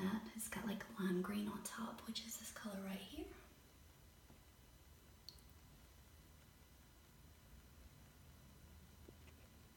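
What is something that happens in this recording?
A bath bomb fizzes and hisses softly in water.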